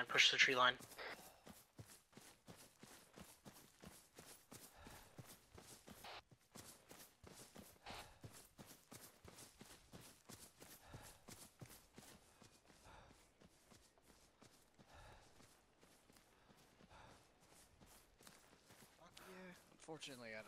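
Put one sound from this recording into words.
Footsteps rustle quickly through tall dry grass.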